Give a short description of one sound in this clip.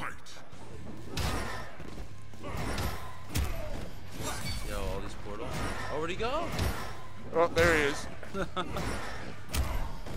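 Blows land with heavy thuds and cracks.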